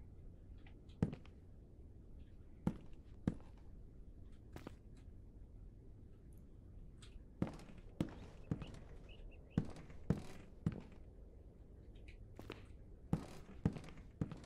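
Slow footsteps thud on creaking wooden floorboards.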